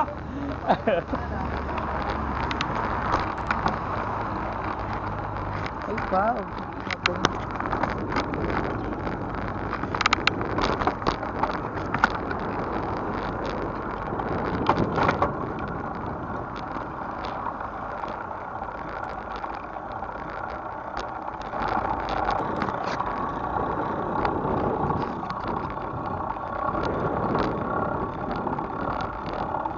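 A bicycle frame rattles over bumps.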